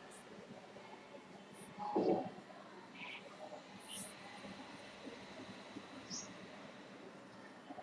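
A pen scratches softly across paper.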